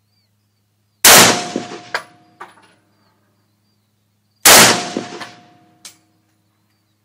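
A rifle fires loud shots that echo outdoors.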